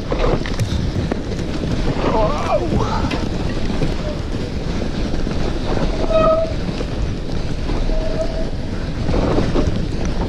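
Bike tyres crunch and rumble over packed snow.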